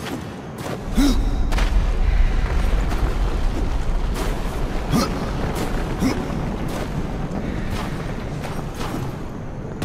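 A heavy stone block grinds and scrapes along a stone floor.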